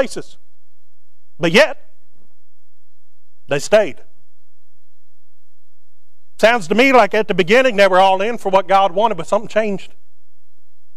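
A man preaches through a microphone, speaking with long pauses.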